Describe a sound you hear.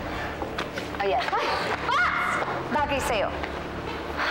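A young woman cries out in pain.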